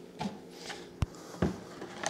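A plastic jug knocks on a counter.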